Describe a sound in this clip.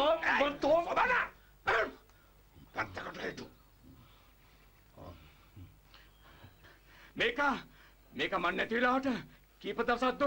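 A man speaks angrily and loudly nearby.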